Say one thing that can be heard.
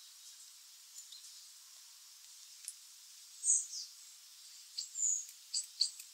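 Baby birds cheep softly in a nest.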